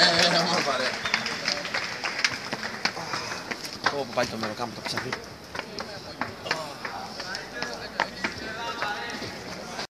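Several young men talk and call out close by.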